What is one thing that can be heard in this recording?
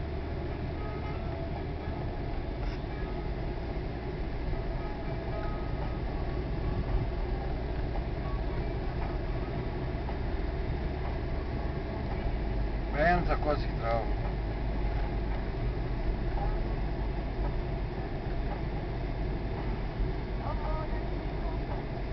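Tyres roll over asphalt.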